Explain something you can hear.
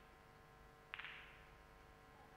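Snooker balls knock together with a sharp click.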